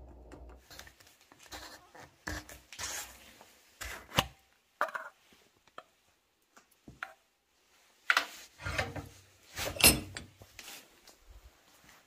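A metal cylinder knocks against a steel vise.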